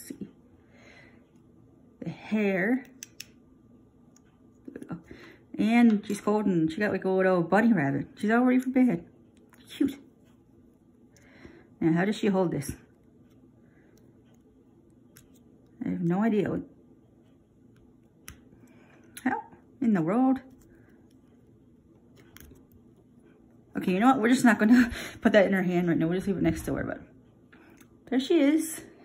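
Small plastic toy pieces click and snap together.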